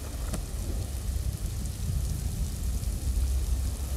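Wind blows with a low, steady rumble.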